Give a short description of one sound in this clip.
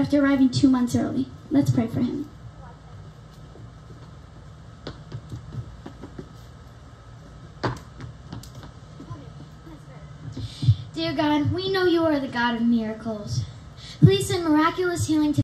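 A girl sings into a microphone.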